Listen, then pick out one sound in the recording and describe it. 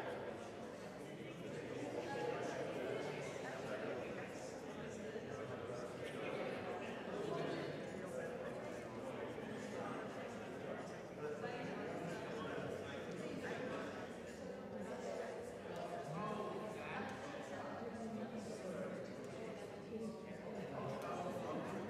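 A crowd of people chatters softly in a large echoing hall.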